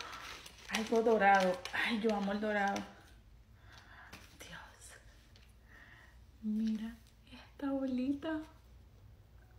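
A young woman talks close up, in bursts with pauses.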